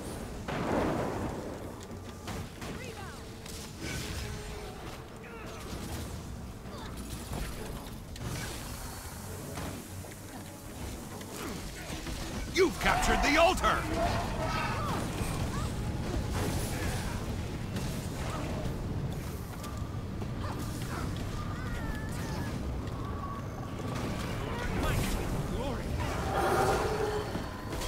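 Spell effects crackle and whoosh in a fast fight.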